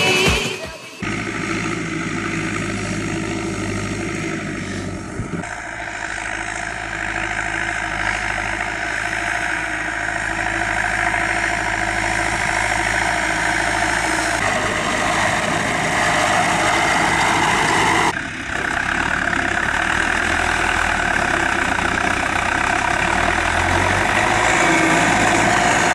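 A tractor engine runs with a steady low rumble.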